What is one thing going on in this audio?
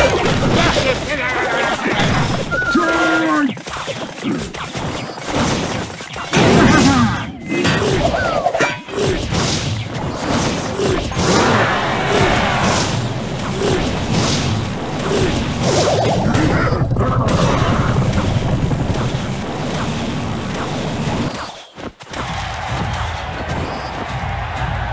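Cartoonish battle effects clash, thud and burst in quick succession.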